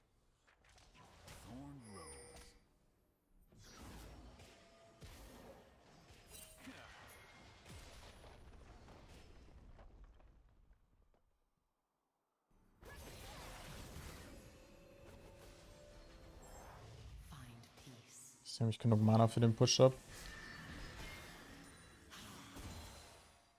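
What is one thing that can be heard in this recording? Game spell effects whoosh and zap in bursts.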